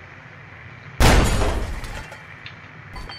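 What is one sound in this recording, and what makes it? A loud gunshot blasts and rings out briefly.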